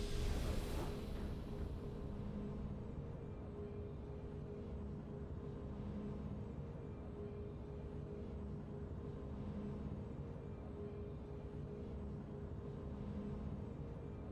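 Victory music from a video game plays softly with a steady low hum.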